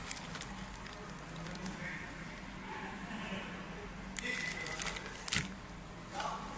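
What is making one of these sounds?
Plastic packaging crinkles and rustles up close.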